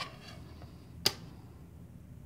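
A plastic ruler taps down on paper.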